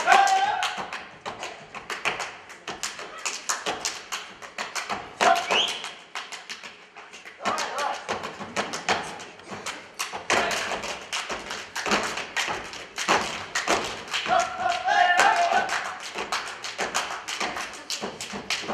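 A folk band plays lively music.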